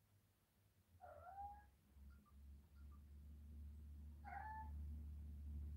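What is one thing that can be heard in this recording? A cat gives short chirping meows.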